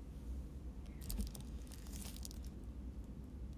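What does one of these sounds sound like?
A plastic bottle crinkles and crackles in someone's hands.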